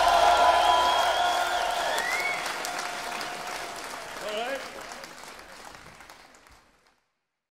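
A concert crowd cheers and whistles.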